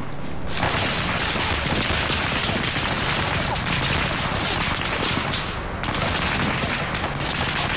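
A large fire roars and crackles nearby.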